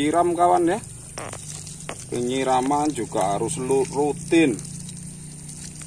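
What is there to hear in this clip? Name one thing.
Water sprays and splashes onto a plant.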